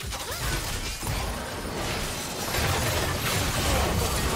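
Magic spells zap and crackle in a noisy battle.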